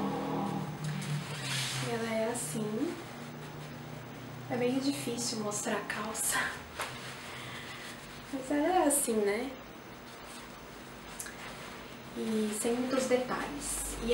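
Fabric rustles as cloth is handled.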